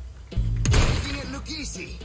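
A gun fires loudly.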